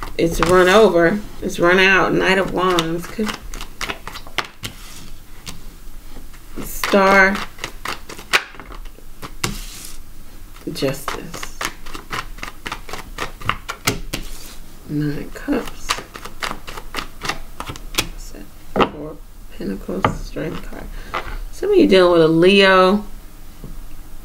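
Playing cards are laid down one by one with soft slaps on a wooden table.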